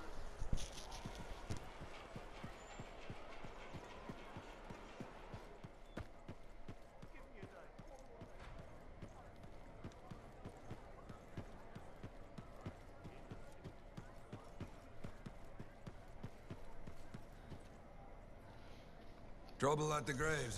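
Footsteps tap steadily on stone floors.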